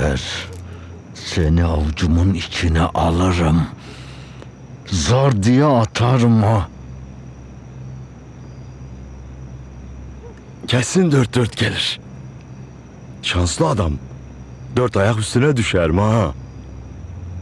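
A man speaks angrily and gruffly, close by.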